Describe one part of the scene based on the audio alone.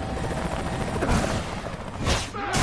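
A rocket launcher fires with a sharp whoosh.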